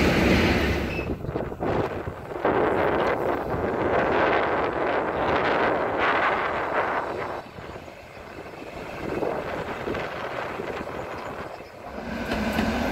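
A passenger train rolls past on the tracks.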